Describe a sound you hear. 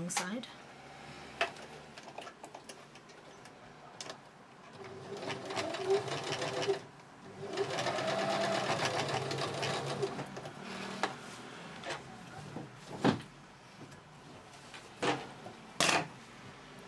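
Fabric rustles as hands handle it.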